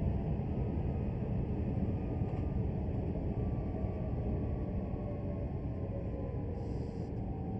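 Electric motors whine with a falling pitch as a train brakes.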